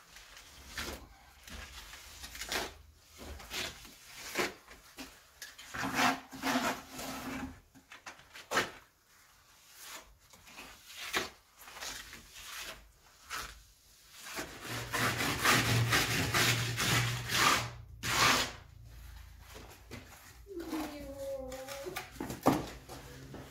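A trowel scrapes and slaps wet plaster onto a wall.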